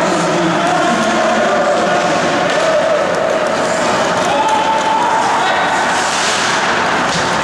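Spectators murmur and call out in a large echoing rink.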